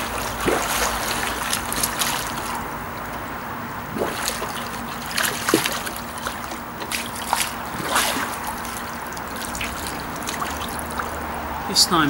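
Water splashes as a man swims.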